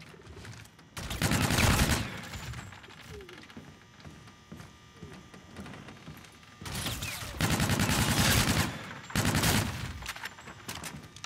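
Gunfire bursts loudly in rapid rounds.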